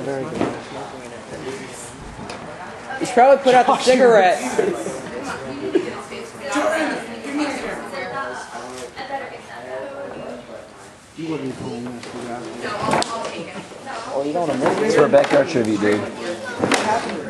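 Bodies thump on a padded mat.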